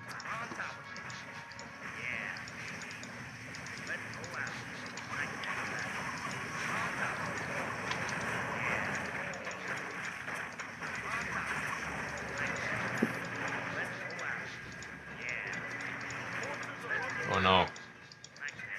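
Magic spells crackle and whoosh again and again.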